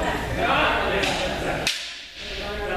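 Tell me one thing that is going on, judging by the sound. Bamboo swords clack against each other.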